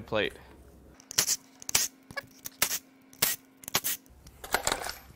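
A cordless impact driver whirs and rattles against a bolt.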